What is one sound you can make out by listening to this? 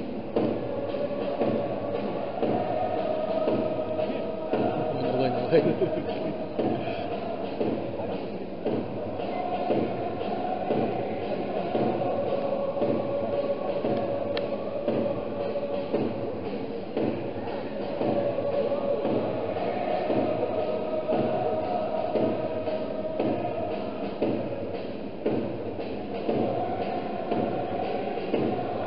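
A stadium crowd claps in a steady rhythm.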